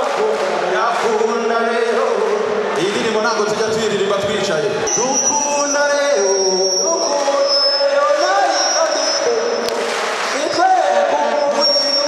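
A young man shouts with energy into a microphone, heard through loudspeakers in a large echoing hall.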